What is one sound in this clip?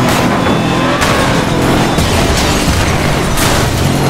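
A car crashes into another car with a metallic bang.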